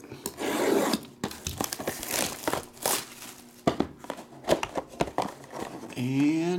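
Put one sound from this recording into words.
Cardboard rustles and scrapes as a box is handled and opened.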